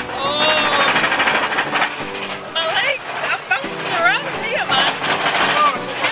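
A young man talks and laughs cheerfully close by.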